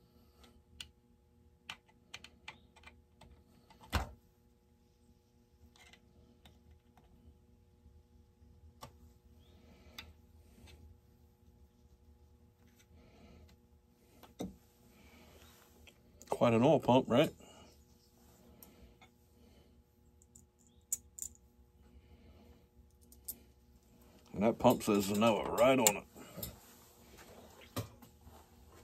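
Small metal parts click and tap as a man works on them by hand.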